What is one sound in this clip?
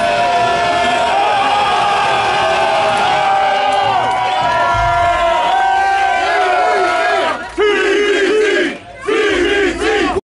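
A band plays loud, distorted rock music live.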